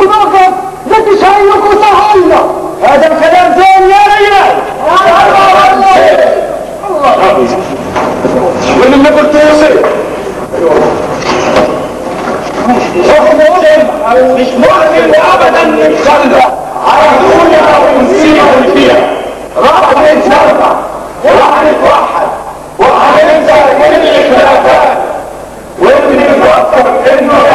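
A chorus of men sings loudly in an echoing hall.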